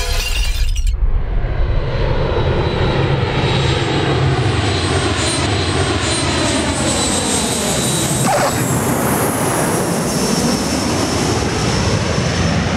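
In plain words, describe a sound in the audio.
A jet airliner's engines roar and whine as it taxis.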